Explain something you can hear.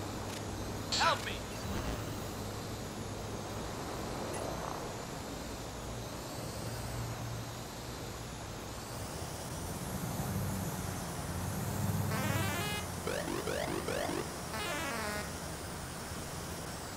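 A small drone's rotors whir steadily, rising and falling in pitch.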